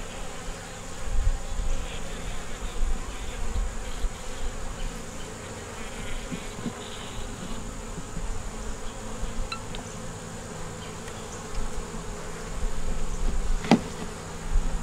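Wooden hive frames knock and scrape against the hive box.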